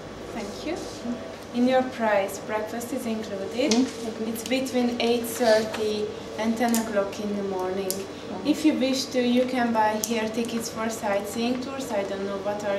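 A young woman speaks calmly and clearly close by.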